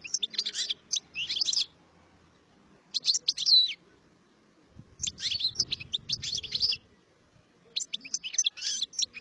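A small songbird sings close by in quick bursts of twittering trills.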